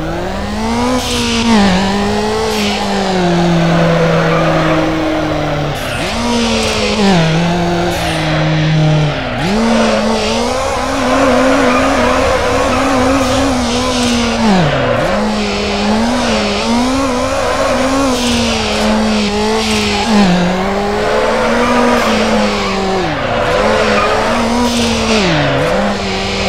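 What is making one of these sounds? Tyres screech as a car drifts around corners.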